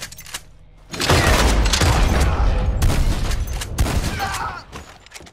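Rifle shots fire in a rapid burst.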